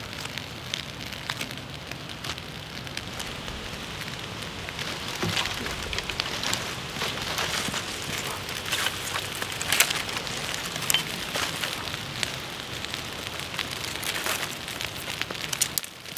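A small fire crackles and pops, growing louder.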